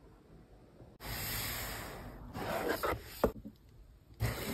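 A hand rolls and taps a cardboard box against a countertop.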